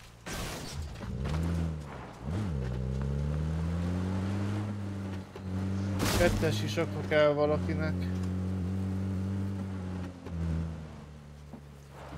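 A vehicle engine starts up and revs, rising and falling in pitch as it drives.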